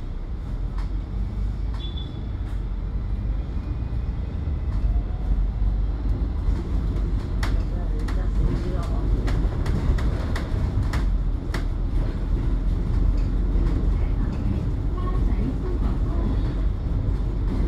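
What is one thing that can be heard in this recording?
Traffic hums in the street nearby.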